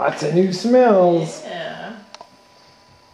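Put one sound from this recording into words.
A woman talks to a puppy close by in a high, animated voice.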